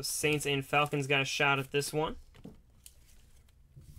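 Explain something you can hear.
A plastic card sleeve rustles and crinkles under handling.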